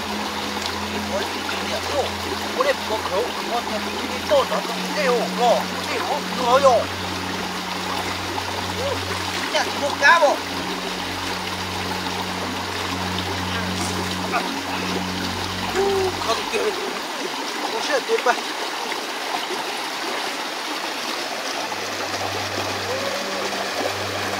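Shallow stream water trickles steadily over stones.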